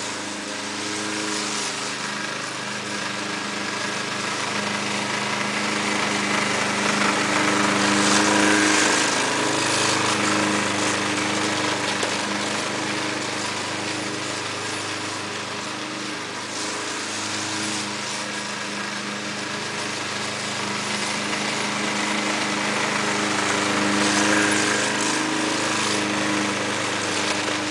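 A petrol lawn mower engine drones steadily, growing louder as it nears and softer as it moves away.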